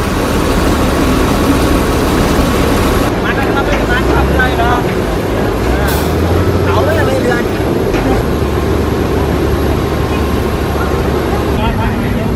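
A crane's diesel engine rumbles steadily.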